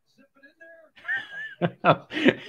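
A younger man laughs loudly.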